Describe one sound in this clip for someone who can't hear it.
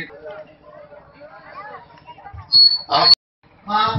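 A crowd of children chatters quietly outdoors.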